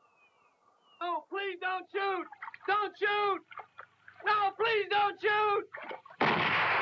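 A man shouts in distress close by.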